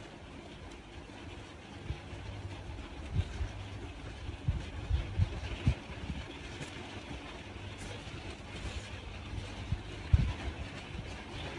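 A metal crochet hook softly clicks and rustles against yarn.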